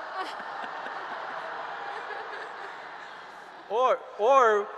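An audience laughs and applauds.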